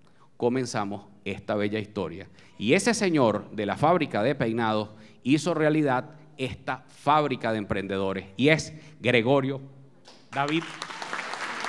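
A man speaks with animation into a microphone over a loudspeaker in an echoing hall.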